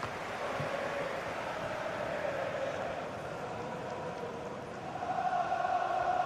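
A stadium crowd roars and chants steadily, swelling louder near the end.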